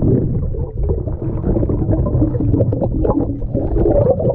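A shovel scrapes through sand and shells underwater.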